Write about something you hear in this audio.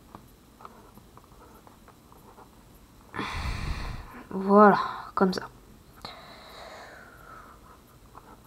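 A felt-tip pen scratches softly across paper.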